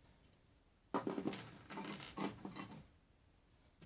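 A metal part knocks and rattles on a wooden tabletop.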